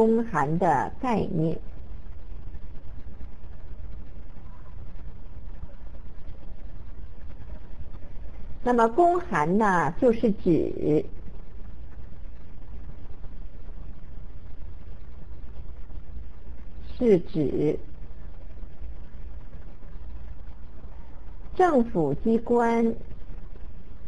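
A middle-aged woman speaks calmly through a microphone, in short phrases with long pauses.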